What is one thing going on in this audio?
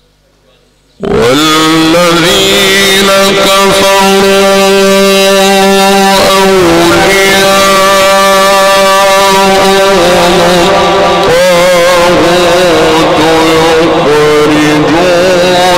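A man chants a long, drawn-out recitation loudly into a microphone, heard through loudspeakers in a reverberant hall.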